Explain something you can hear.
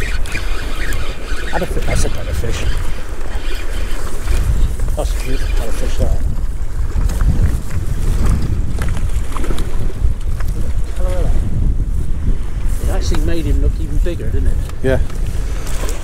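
Small waves splash against rocks.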